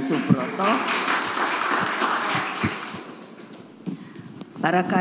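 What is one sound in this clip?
An elderly woman speaks firmly into a microphone.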